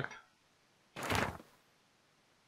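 A sheet of paper rustles briefly as it unfolds.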